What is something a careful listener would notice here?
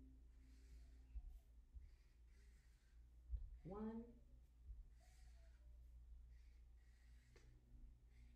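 A marker squeaks faintly on paper.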